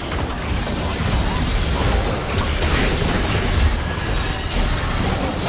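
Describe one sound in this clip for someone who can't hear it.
Spell effects blast and crackle in a game battle.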